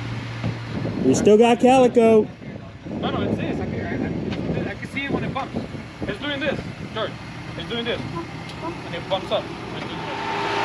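A man speaks from nearby outdoors.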